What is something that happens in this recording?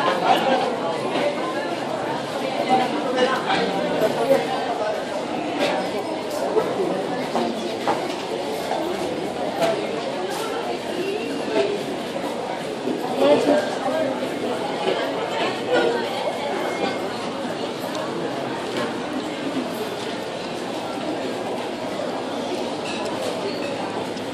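A crowd chatters.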